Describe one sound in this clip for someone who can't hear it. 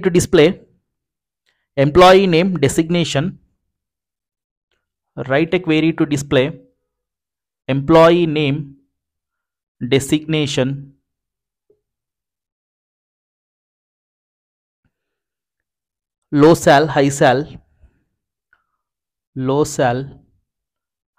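A man speaks calmly into a headset microphone, in short phrases with pauses.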